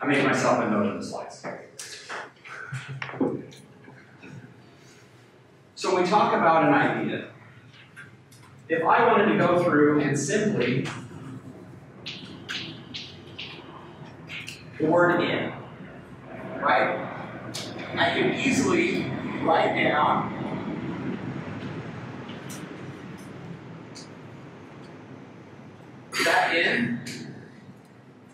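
A man lectures in bursts, heard from a distance in an echoing room.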